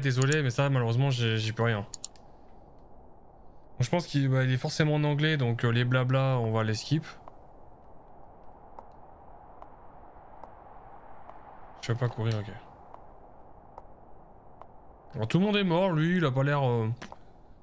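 A young man talks with animation close to a microphone, in bursts with pauses.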